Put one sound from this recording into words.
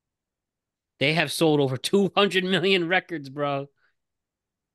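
A young man speaks casually into a close microphone over an online call.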